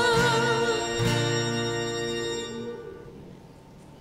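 A band plays a song and fades out on a held final chord.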